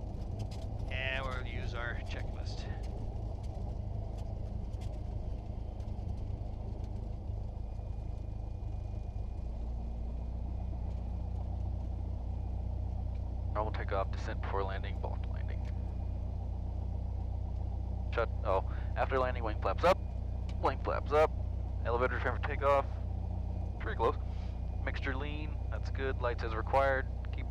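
A small plane's engine drones steadily from inside the cockpit.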